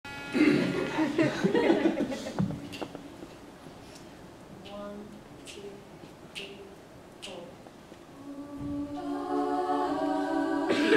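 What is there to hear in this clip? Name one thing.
A choir of men and women sings together in a large hall.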